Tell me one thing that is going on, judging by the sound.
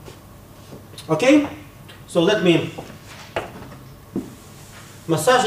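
An elderly man speaks calmly into a microphone, with short pauses.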